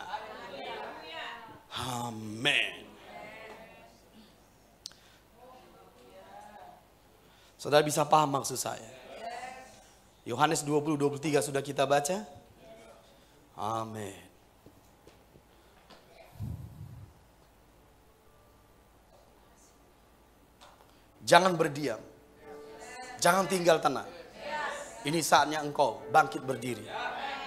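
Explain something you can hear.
A middle-aged man speaks with feeling into a microphone, in bursts with pauses, in a room with a slight echo.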